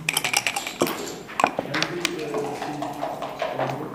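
A game clock button clicks.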